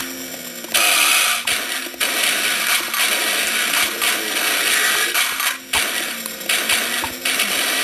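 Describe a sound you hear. Gunfire blasts in loud, rapid bursts.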